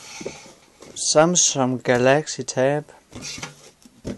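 A box slides out of a cardboard carton.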